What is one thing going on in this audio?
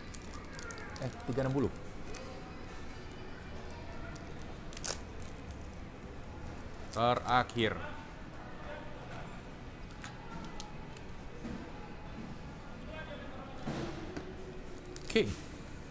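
A plastic-wrapped card pack crinkles as hands handle it.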